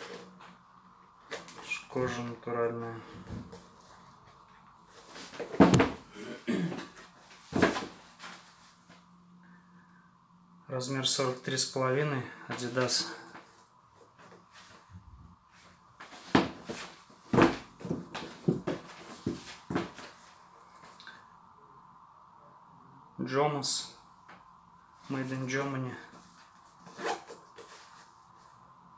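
Leather boots creak and rustle as hands bend and handle them.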